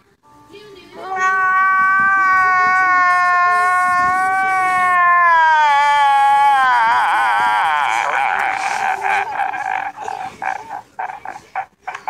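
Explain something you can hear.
A man wails loudly, crying.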